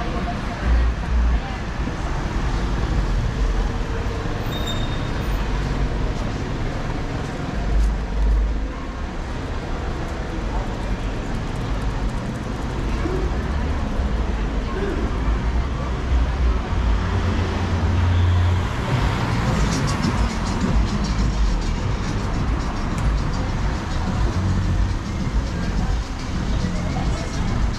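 City traffic hums steadily nearby outdoors.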